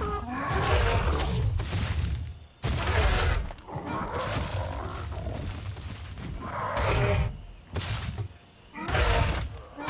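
A large creature snarls and roars.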